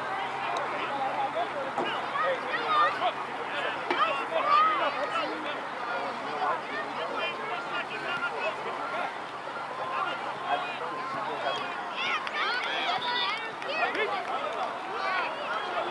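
A man on the sideline calls out instructions.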